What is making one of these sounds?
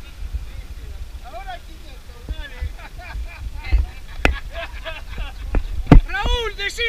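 A man shouts and calls out from a short distance.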